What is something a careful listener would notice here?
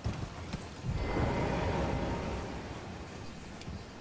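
A magical shimmer swells with a bright whoosh.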